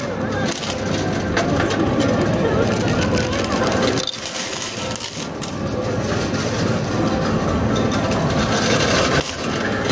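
Metal coins clink and clatter as they are pushed and fall.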